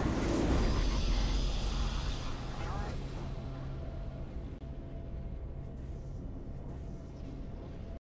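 A triumphant victory fanfare plays.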